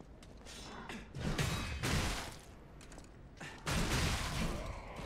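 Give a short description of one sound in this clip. Blades slash and strike in a loud fight.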